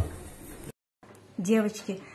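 Scissors snip through raw chicken.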